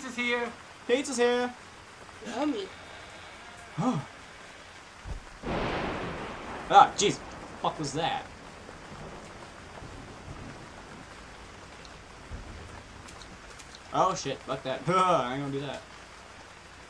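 A second young man talks and reacts, heard close through a microphone.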